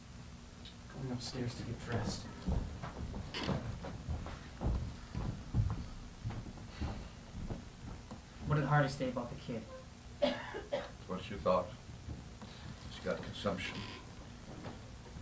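A man speaks with feeling on a stage, heard from a distance.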